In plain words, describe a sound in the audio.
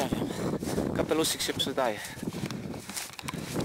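A man speaks close to the microphone.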